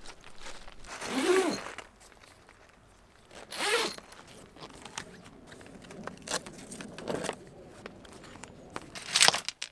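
A canvas cover rustles and flaps as it is handled.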